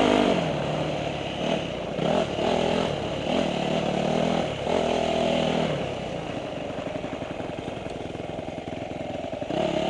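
A motorbike engine revs up and down close by.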